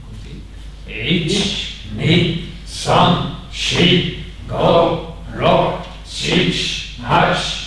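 A group of people shout counts together in a steady rhythm.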